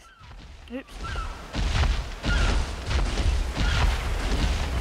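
Creatures let out short chirping calls.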